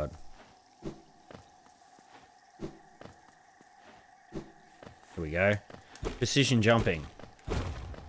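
Light footsteps patter quickly.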